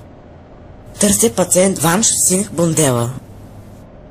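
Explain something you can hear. A young woman speaks with some urgency.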